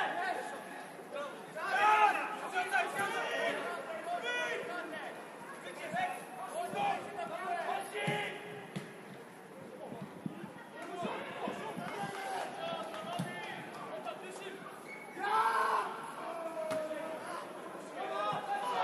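Young men shout to each other across an outdoor football pitch.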